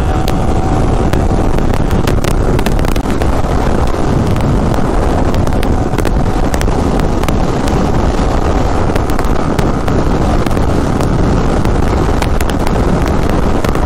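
Wind rushes loudly past a rider.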